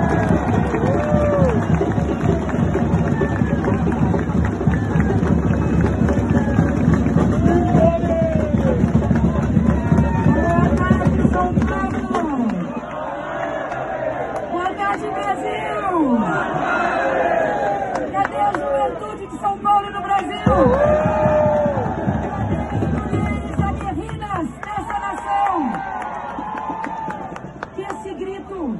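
A large crowd cheers and shouts.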